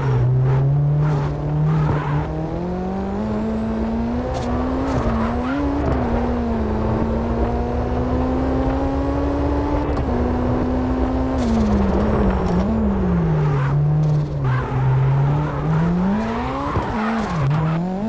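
Tyres squeal as the car slides through corners.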